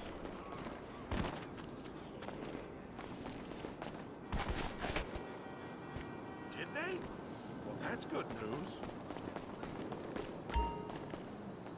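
Footsteps run quickly across stone paving.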